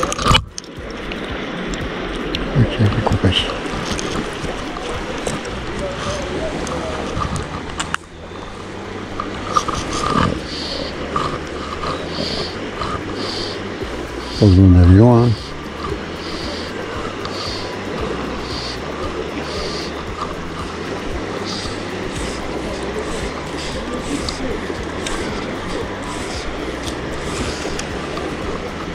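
A river flows steadily nearby.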